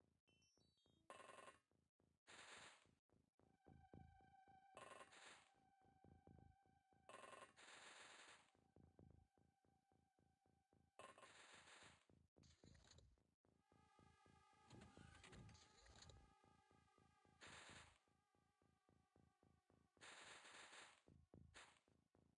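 Footsteps crunch on sand in quick steps.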